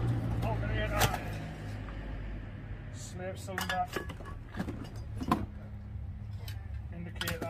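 A metal tool knocks and scrapes against a car door.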